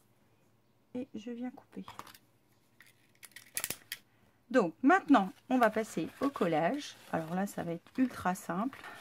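Stiff paper rustles and crinkles as it is folded by hand.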